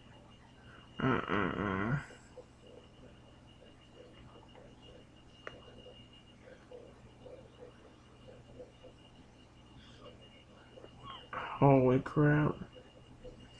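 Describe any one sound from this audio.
A video game plays loud, tuneful sound effects through a small tablet speaker.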